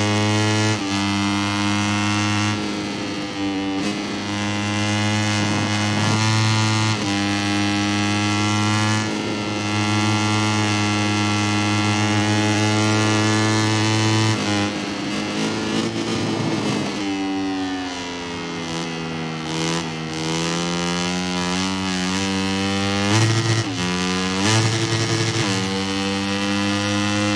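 A motorcycle engine screams at high revs, dropping in pitch when it slows for corners and climbing as it speeds up.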